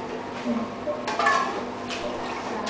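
A metal scoop clinks against a steel bowl.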